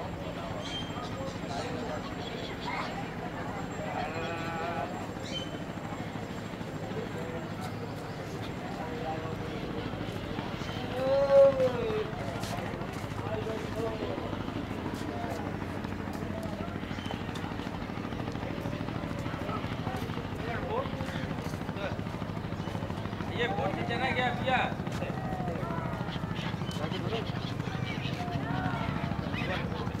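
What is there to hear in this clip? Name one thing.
Voices of people chatter at a distance outdoors.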